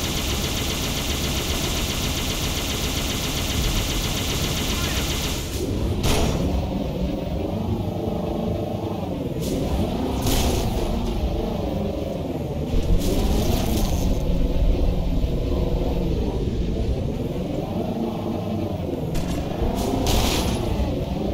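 A hovering vehicle's engine hums and whines, rising and falling in pitch.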